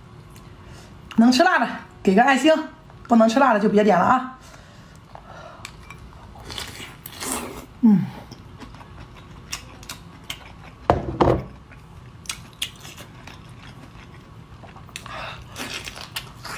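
Crispy shell cracks and rustles in hands.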